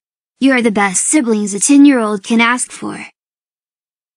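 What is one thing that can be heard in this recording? A high-pitched, flat synthetic-sounding voice speaks briefly, close up.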